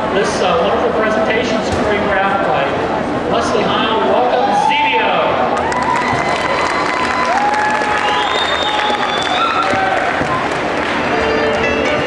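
A group of young performers sings together, heard from across a large hall.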